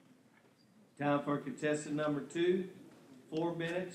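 An elderly man speaks steadily into a microphone, heard through loudspeakers.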